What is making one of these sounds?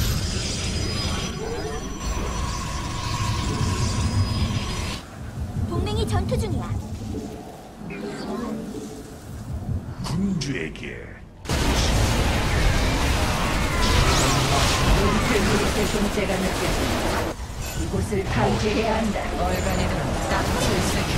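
Weapons fire and explosions crackle in a fast game battle.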